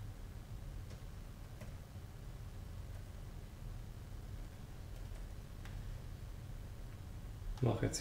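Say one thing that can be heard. Fingers tap softly on a laptop keyboard.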